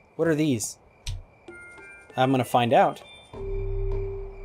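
Coins clink and jingle.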